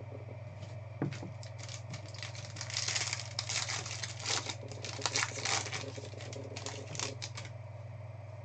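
Foil wrappers crinkle as they are torn open.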